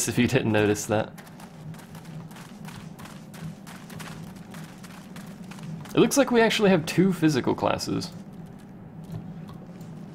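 Footsteps patter quickly on a wooden floor.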